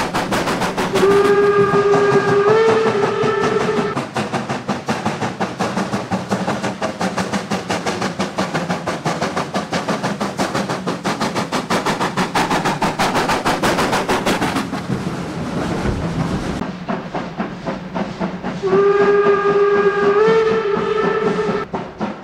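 A steam locomotive's whistle blows loudly.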